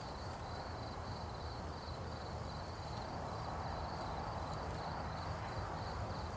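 A person's footsteps shuffle on the ground.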